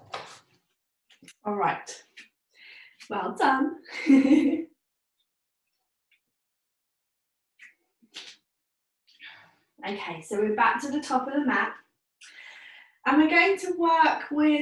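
A woman speaks calmly and clearly close by, pausing now and then.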